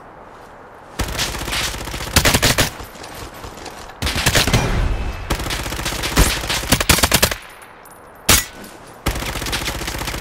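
Loud gunshots ring out in quick bursts.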